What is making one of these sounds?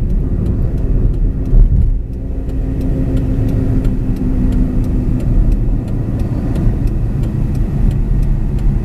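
Wind buffets through an open car window.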